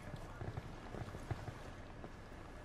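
Footsteps thud softly on a hard floor.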